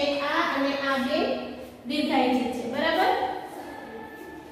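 A woman speaks clearly and with expression, close to a microphone.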